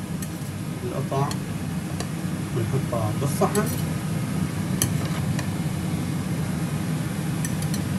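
A metal spatula clicks and scrapes against a grill plate.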